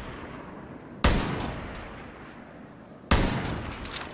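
A rifle fires sharp, loud shots that echo away outdoors.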